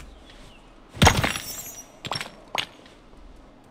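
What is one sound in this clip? Leaves rustle loudly as something pushes through a bush.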